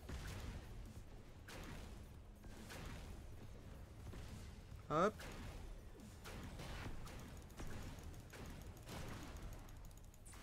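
Laser shots zap repeatedly.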